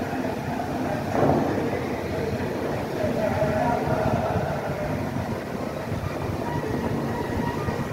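A crowd of people chatters in the distance, outdoors.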